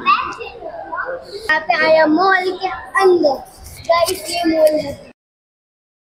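A young girl talks with animation close to a microphone.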